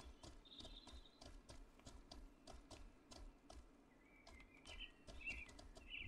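Hooves thud steadily on soft ground as a horse trots.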